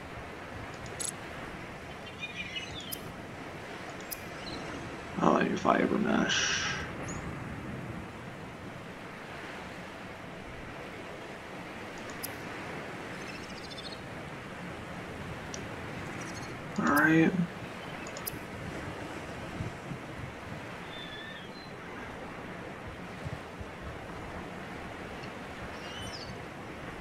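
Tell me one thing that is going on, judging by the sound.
Soft electronic blips chirp now and then.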